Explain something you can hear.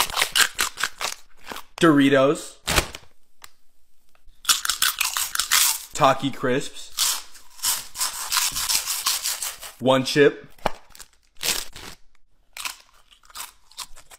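A young man crunches loudly on crispy chips close to the microphone.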